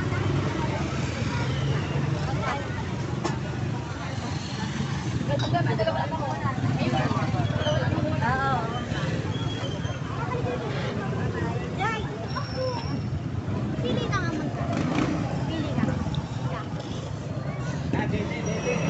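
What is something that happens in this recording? A crowd of young people chatter nearby outdoors.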